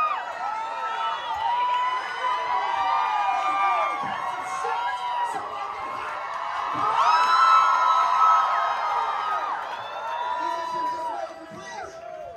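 A large group of men and women sing loudly together outdoors.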